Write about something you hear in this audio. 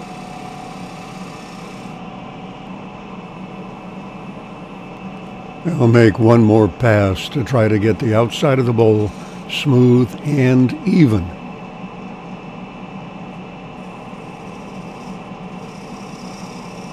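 A bowl gouge cuts into spinning holly, peeling off shavings.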